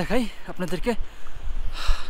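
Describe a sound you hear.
A young man speaks calmly, close up.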